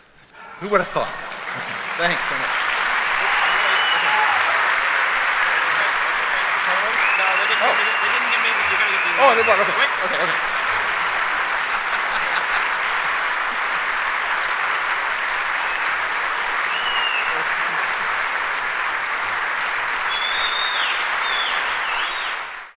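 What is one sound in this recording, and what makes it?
A large audience applauds and cheers in an echoing hall.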